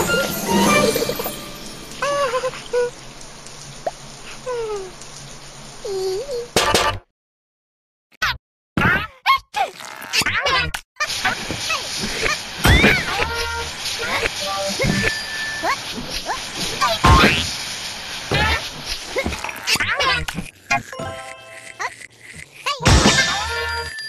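Playful game sound effects chime and bleep.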